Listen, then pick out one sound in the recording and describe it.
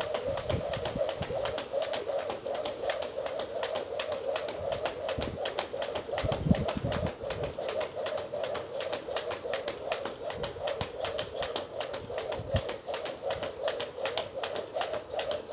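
A skipping rope slaps the ground in a quick, steady rhythm.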